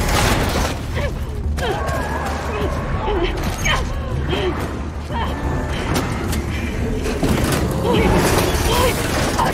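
A monster shrieks with warbling, gurgling cries close by.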